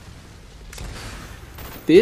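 A rifle fires in rapid bursts nearby.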